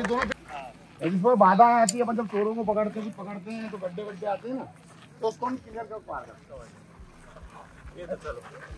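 A man talks loudly nearby.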